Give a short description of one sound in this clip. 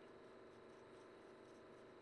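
Trading cards rustle and shuffle in hands.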